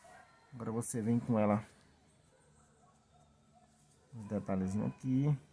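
A pen rubs softly on paper.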